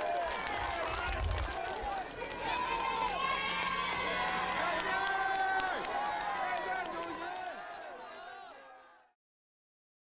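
A crowd claps hands.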